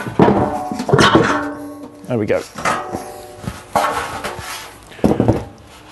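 A metal drum rattles as it is lifted out.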